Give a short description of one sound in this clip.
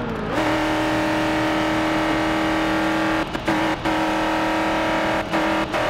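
A racing car engine drones at a steady high pitch, with brief dips.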